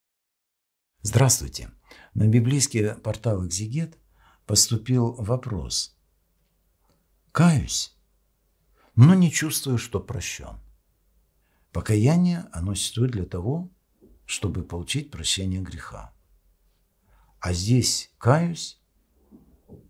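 An elderly man speaks calmly and slowly into a microphone, with pauses.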